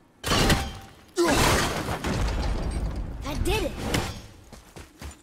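A heavy wooden walkway crashes down with a loud clatter.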